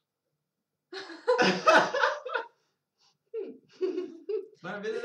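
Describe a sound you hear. A group of young people laugh together close by.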